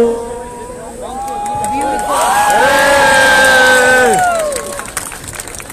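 A crowd chants back in unison outdoors.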